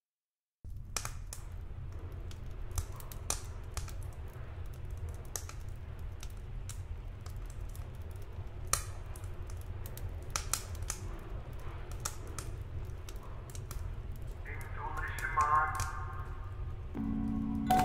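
A wood fire crackles in a stove.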